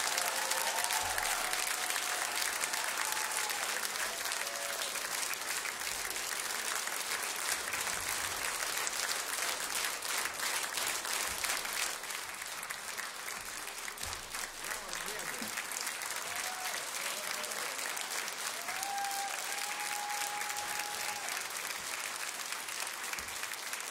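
An audience applauds steadily in a large hall.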